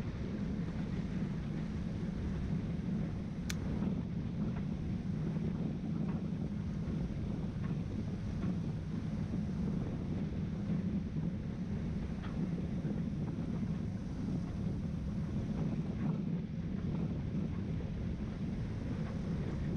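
Water laps and splashes against the hull.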